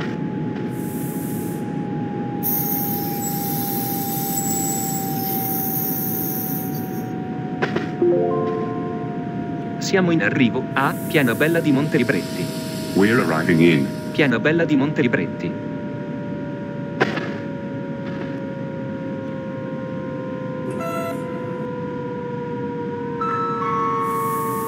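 An electric train's motor whines steadily, slowly dropping in pitch.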